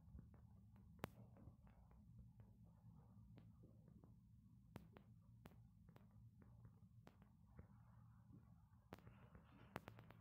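Coins chime as they are picked up.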